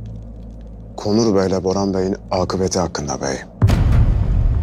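A man speaks in a low, serious voice.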